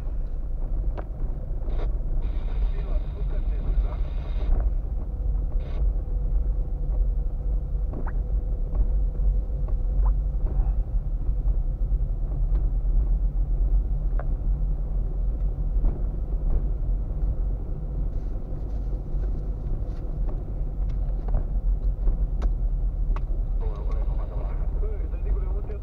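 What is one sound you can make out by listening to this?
Tyres crunch and rumble over a rough, bumpy road.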